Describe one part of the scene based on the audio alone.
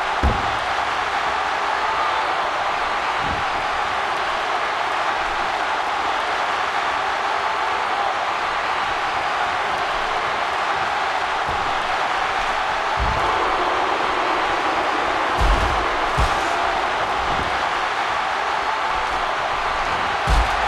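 A large arena crowd roars and cheers steadily.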